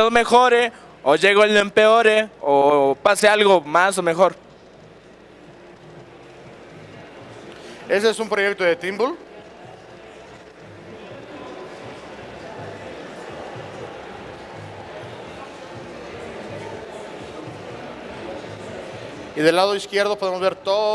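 A man speaks into a microphone to an audience, in a large hall.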